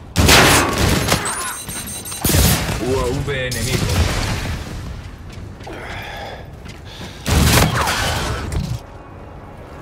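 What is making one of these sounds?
Gunfire cracks in loud bursts.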